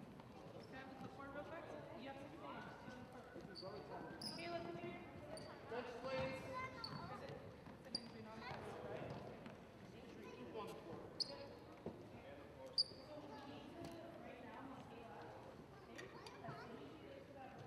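Players and spectators call out and chatter in a large echoing gym.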